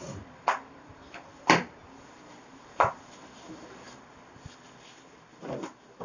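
Fabric rustles and flaps.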